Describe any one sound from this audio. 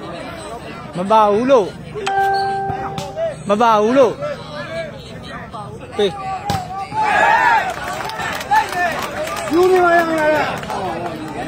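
A man shouts loudly close by.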